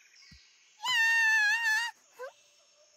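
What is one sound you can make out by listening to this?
A small bird squawks shrilly.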